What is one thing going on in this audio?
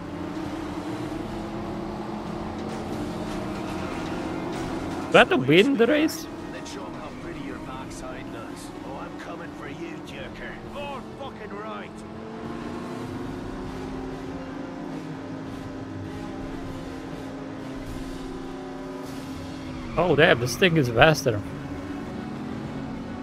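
Racing car engines drone steadily.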